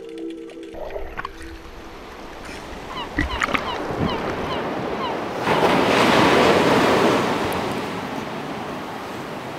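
Waves surge and crash against rocks.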